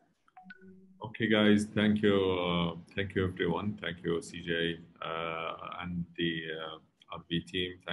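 A young man speaks over an online call.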